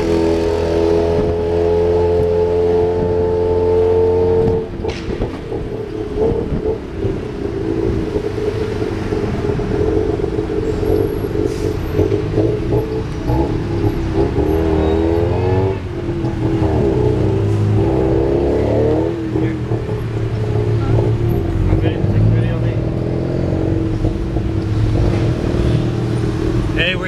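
A small engine drones and revs throughout.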